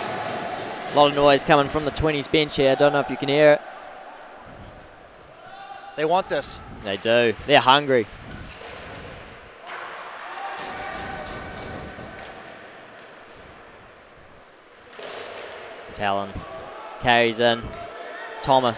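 Young players shout across the ice.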